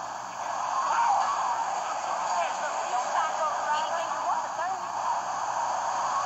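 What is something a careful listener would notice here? Tyres squeal as a car skids around corners.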